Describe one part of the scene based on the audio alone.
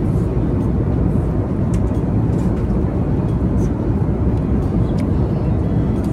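A boy chews noisily close by.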